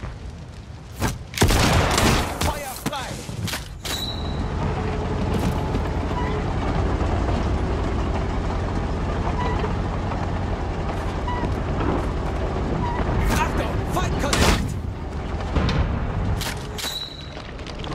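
Gunshots ring out in short, sharp bursts.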